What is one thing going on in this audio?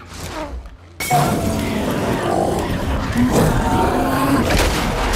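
Flames crackle and roar loudly.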